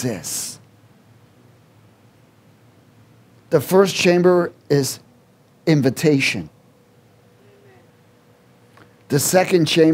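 A middle-aged man speaks through a microphone in bursts with pauses.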